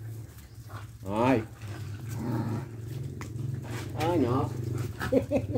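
A dog whines.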